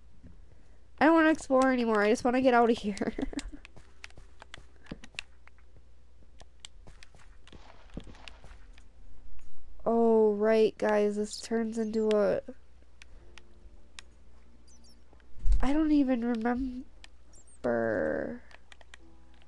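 A young woman talks animatedly into a microphone, close by.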